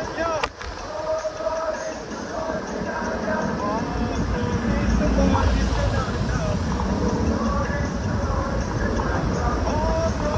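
Tyres hiss on wet road.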